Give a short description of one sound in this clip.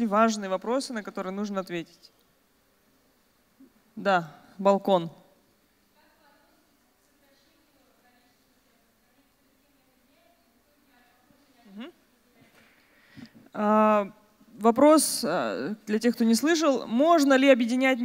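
A woman speaks with animation into a microphone over loudspeakers, her voice echoing in a large hall.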